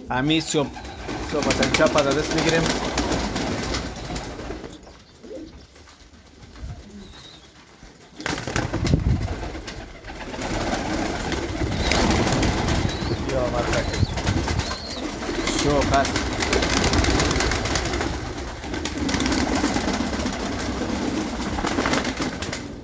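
Pigeons coo softly and steadily.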